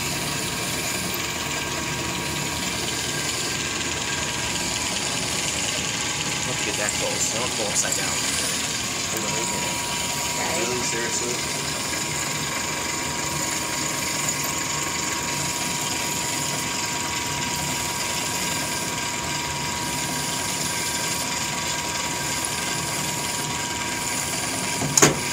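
A drill bit cuts into titanium on a lathe.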